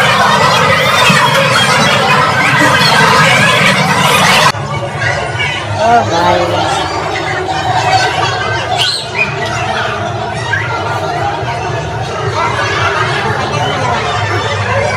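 Several men chatter nearby in a crowded room.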